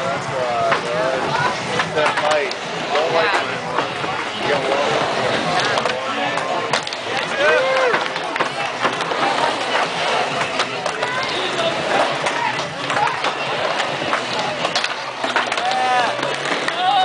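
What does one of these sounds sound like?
A crowd of young men chatter and call out nearby, outdoors.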